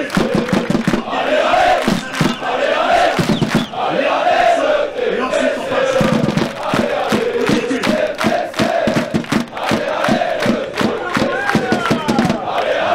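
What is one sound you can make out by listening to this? A large crowd of fans chants loudly in unison outdoors.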